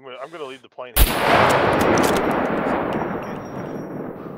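A rifle fires a single loud shot that echoes and rolls away.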